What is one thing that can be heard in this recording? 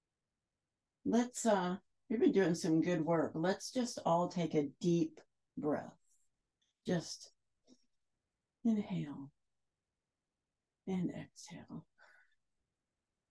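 A woman speaks calmly into a microphone, guiding slowly with pauses.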